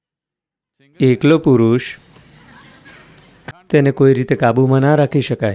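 An elderly man speaks calmly and expressively into a close microphone.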